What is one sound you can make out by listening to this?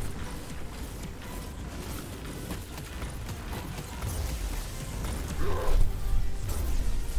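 Electric energy crackles and zaps.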